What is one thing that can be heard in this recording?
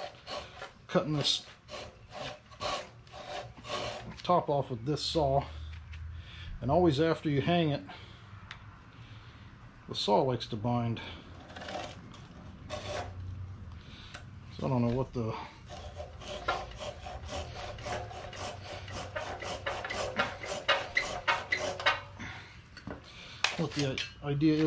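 A hand file rasps in quick strokes on a wooden axe handle.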